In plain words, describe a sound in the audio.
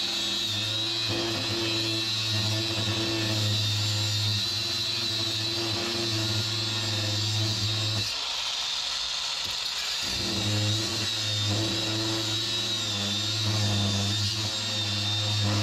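An angle grinder motor whines at high speed.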